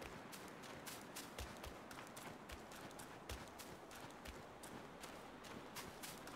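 Footsteps crunch on dry gravel at a steady walking pace.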